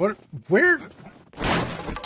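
A wooden door swings open.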